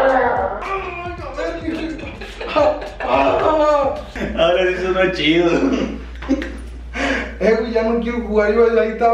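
A second young man laughs and talks with animation nearby.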